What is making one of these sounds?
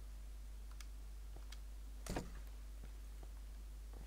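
A wooden door bumps open.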